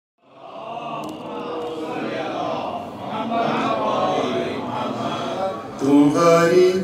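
Several men murmur a recitation together in low voices.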